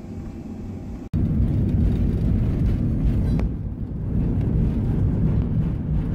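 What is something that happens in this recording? An aircraft cabin rumbles with a deep, steady roar as the plane rolls along the runway.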